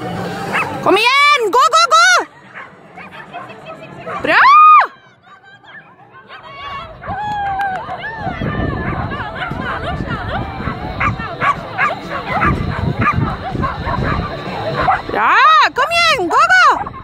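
A dog barks excitedly nearby.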